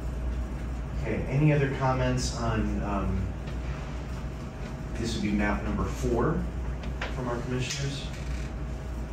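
An adult speaks calmly in a room.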